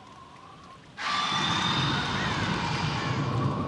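Water rushes and splashes loudly.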